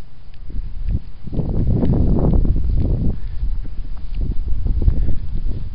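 Dogs run through long grass with a rustling sound.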